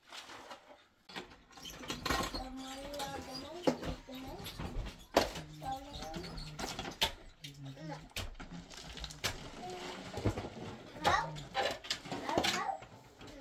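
A wheelbarrow rattles as it is lifted and pushed.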